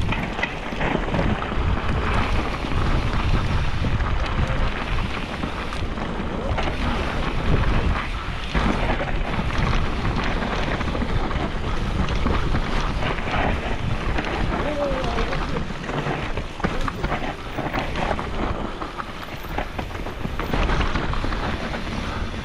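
Wind rushes past, loud and close.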